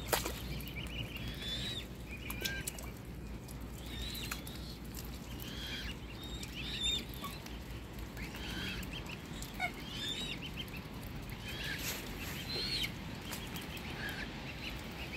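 Cygnets peep in high, repeated chirps close by.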